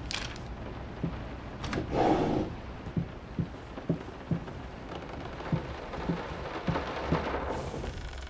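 Footsteps knock slowly across a wooden floor.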